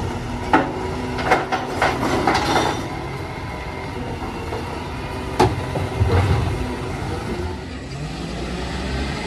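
A garbage truck engine idles with a low rumble.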